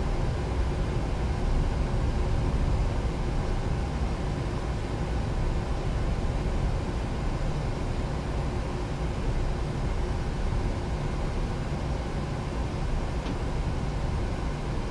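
Jet engines rumble low as an airliner taxis.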